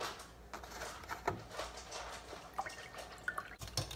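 Water pours from a jug into a glass.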